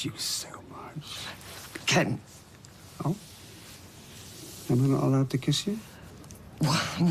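An elderly woman speaks softly and with feeling, close by.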